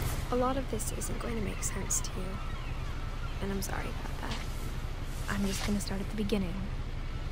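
Paper pages rustle as a notebook page turns.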